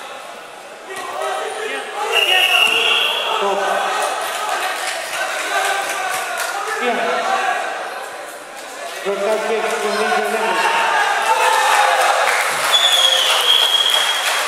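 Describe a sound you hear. A large crowd shouts and cheers loudly in an echoing hall.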